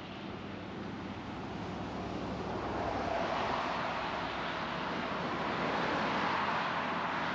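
A truck rumbles past on the road.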